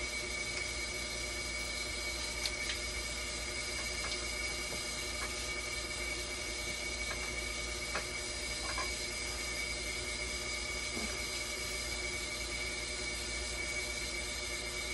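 A dialysis machine hums with a steady high whine.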